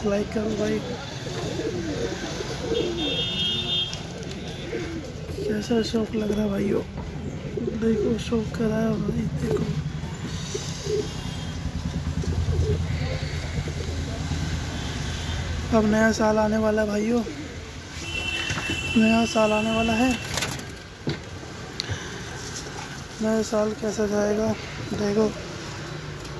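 Pigeons coo in low, rolling calls close by.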